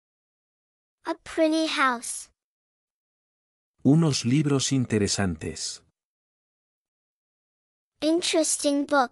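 A young woman speaks clearly and with animation, close to a microphone.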